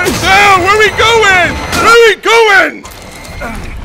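A man shouts with animation close to a microphone.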